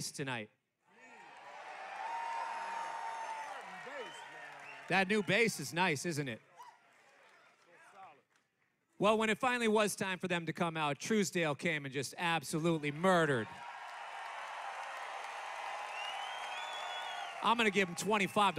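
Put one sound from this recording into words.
A crowd cheers and applauds loudly.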